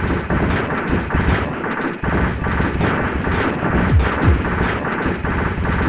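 Rapid electronic gunfire pops and buzzes without pause.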